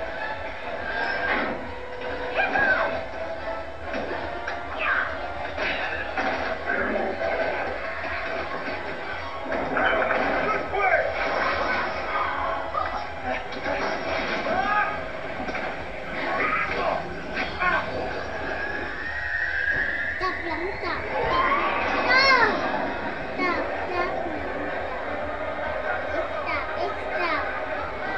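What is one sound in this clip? Young children talk and chatter close by.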